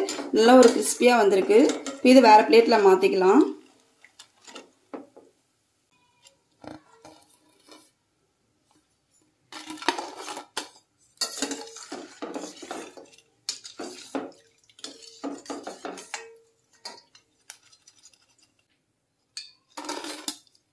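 A metal skimmer scrapes and clinks against a steel pot.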